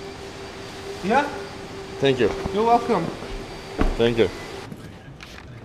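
A man talks with animation.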